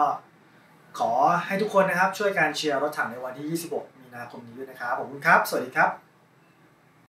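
A young man speaks calmly and clearly into a close microphone.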